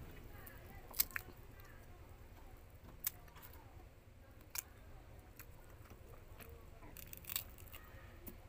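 Fruit peel tears and cracks open with sharp snaps.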